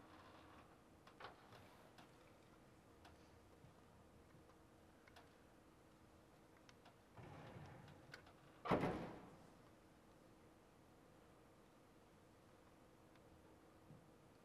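A zither is plucked, with sparse single notes ringing out in a large echoing hall.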